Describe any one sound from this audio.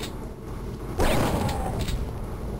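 A shotgun fires once with a loud blast.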